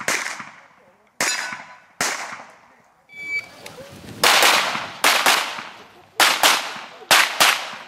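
Gunshots ring out one after another, echoing outdoors.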